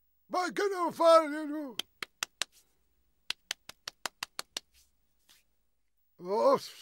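A cartoon penguin babbles in a high, squawking voice.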